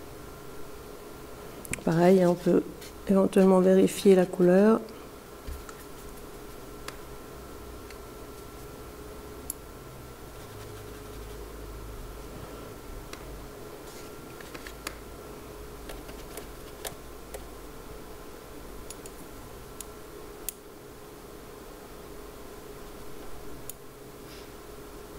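A paintbrush swishes and taps softly on paper.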